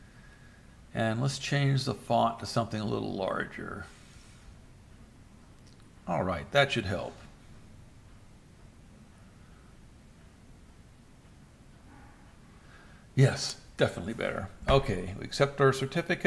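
A middle-aged man talks calmly into a microphone, close by.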